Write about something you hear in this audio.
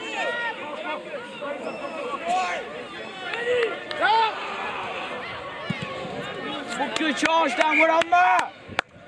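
Teenage boys shout to one another outdoors.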